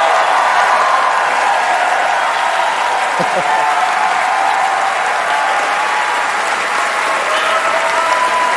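A large crowd applauds and cheers loudly in a big echoing hall.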